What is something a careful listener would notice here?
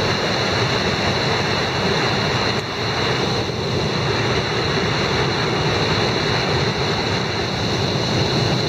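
Whitewater rapids roar loudly and steadily close by.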